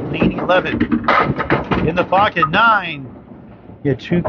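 Bowling pins crash and clatter as they are struck.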